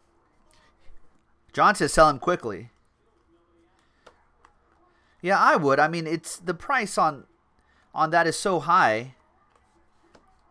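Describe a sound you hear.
Trading cards rustle and flick as they are shuffled.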